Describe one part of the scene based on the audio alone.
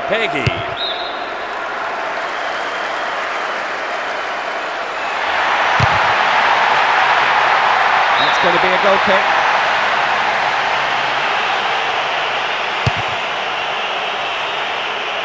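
A stadium crowd roars steadily and swells louder partway through.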